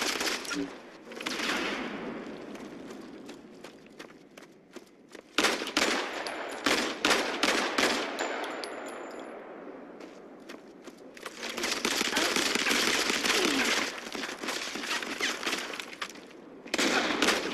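Gunshots from a shooting video game crack and echo.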